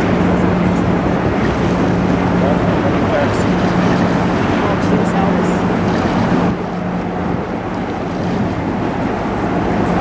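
A large ship's engine hums low and steady close by.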